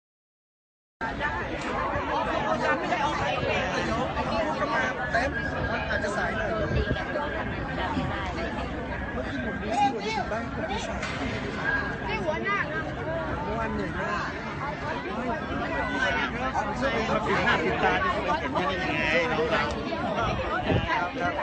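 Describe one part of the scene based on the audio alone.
Several women talk and laugh close by.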